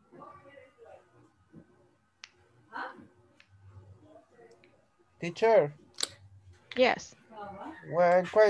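A woman speaks over an online call, quietly at first and then louder and with animation.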